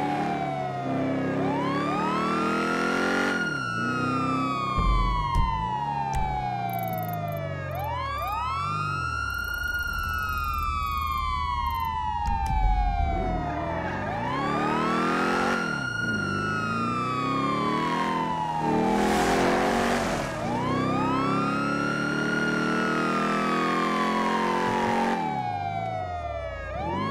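An ambulance siren wails loudly in a rising and falling cycle.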